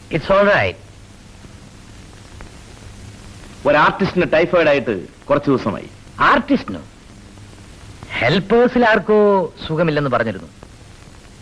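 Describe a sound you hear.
A second man answers loudly.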